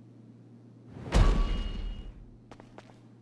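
A loud notification boom and chime sound.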